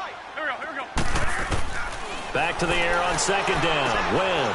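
Football players collide and crash together in a tackle.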